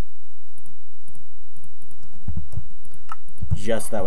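Soft menu clicks tick in a video game.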